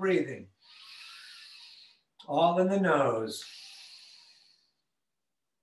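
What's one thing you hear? A man breathes out audibly.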